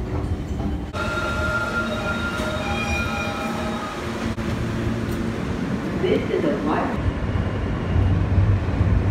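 A subway train hums and whines as it rolls along.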